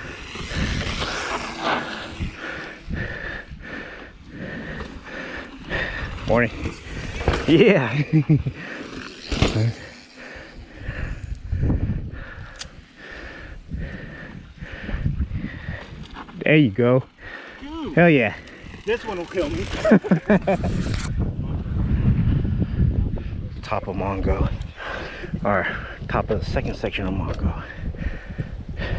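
Bicycle tyres roll and crunch over dirt and rock.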